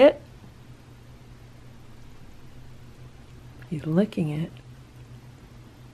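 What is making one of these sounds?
A cat licks and crunches on a dry biscuit up close.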